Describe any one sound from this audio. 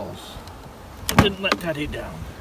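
Wooden hive frames knock and clatter.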